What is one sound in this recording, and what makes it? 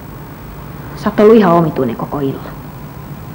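A woman speaks in short, tense phrases nearby.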